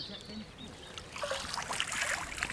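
A landing net swishes and drips as it is lifted from the water.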